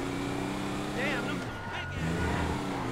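Car tyres screech as the car turns sharply.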